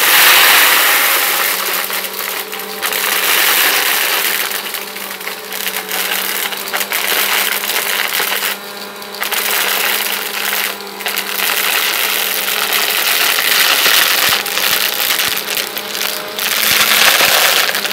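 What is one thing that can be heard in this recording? A vacuum cleaner whirs loudly with a steady hum.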